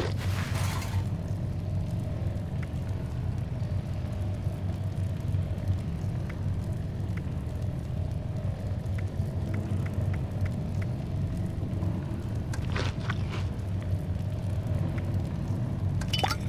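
Soft video game menu clicks tick as a selection moves through a list.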